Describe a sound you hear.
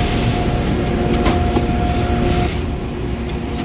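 A metal drawer rolls open and shut.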